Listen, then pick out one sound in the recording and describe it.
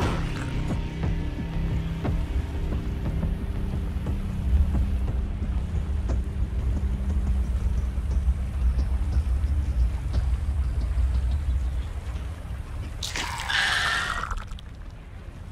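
A deep, steady rumble drones on.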